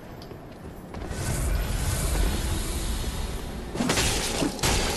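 A fire spell whooshes and crackles.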